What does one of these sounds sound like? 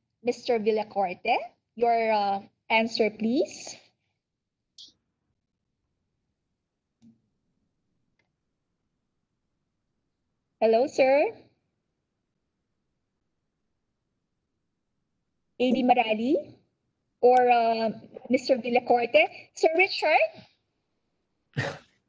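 A middle-aged woman speaks calmly over an online call, in short bursts with pauses.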